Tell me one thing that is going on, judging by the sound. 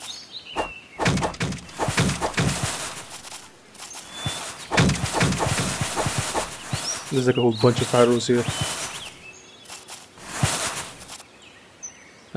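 A sword smashes through wooden barrels with loud cracks.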